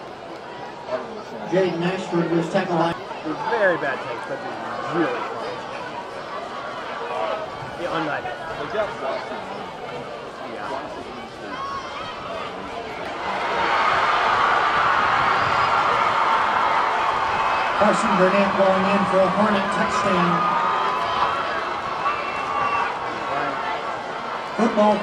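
A large stadium crowd cheers loudly from all around.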